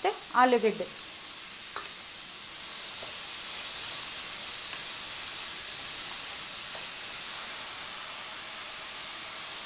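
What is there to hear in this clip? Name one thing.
A spatula stirs and scrapes vegetables in a metal pot.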